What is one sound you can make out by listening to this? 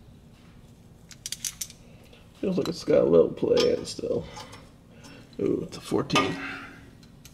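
Metal parts clink and rattle as they are handled.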